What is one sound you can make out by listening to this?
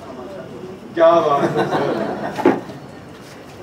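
An elderly man laughs loudly into a microphone.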